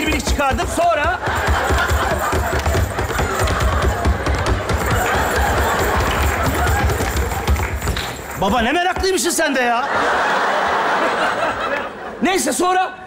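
An audience laughs and applauds loudly in a large hall.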